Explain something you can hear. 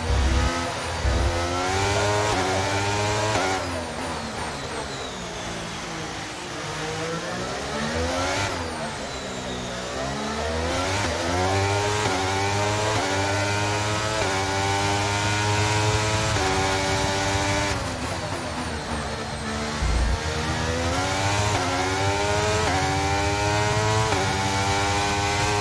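A racing car engine screams at high revs, rising in pitch and dropping with each quick gear change.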